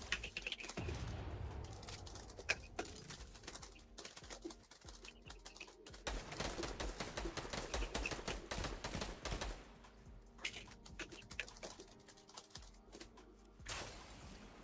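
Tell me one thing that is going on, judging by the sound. Footsteps thud quickly over soft ground.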